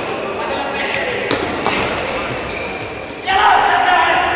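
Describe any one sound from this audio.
A crowd of spectators cheers and shouts in a large echoing indoor hall.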